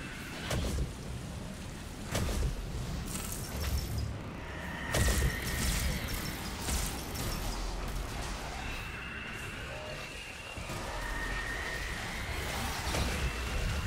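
Rain pours steadily.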